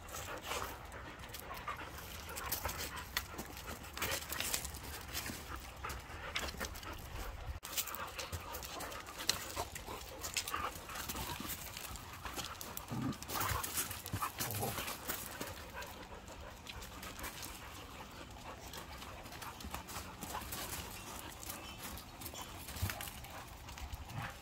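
Dogs scuffle and play-fight, their paws scraping on gravel.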